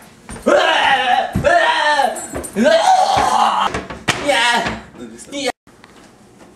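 A young man shouts and yells with strain in his voice.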